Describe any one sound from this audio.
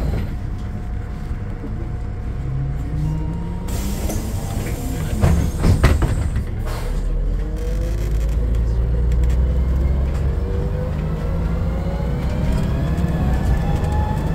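A bus engine hums and whines as the bus drives along.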